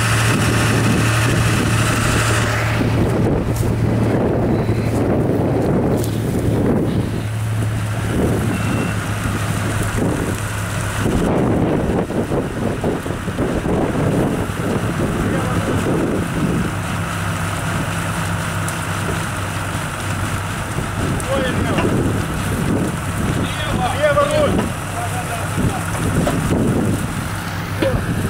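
A vehicle engine hums steadily outdoors.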